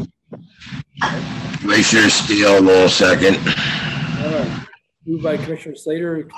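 An elderly man speaks loudly over an online call, his voice crackling.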